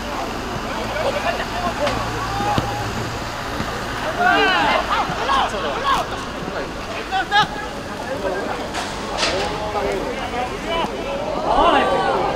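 Young men shout to one another across an open field.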